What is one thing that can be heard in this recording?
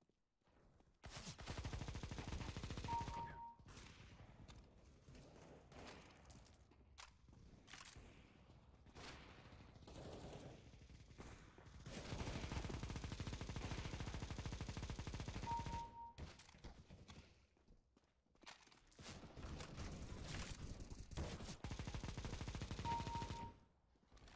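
A machine gun fires long, rapid bursts.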